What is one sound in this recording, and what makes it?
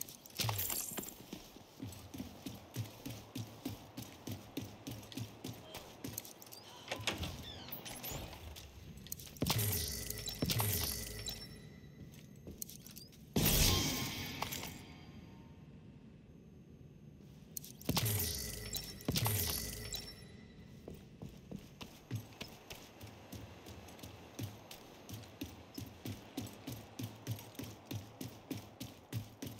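Footsteps tread at a steady walking pace on a hard floor.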